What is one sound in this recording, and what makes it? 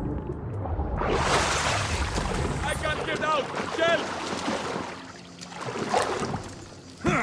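Water splashes as a swimmer climbs out.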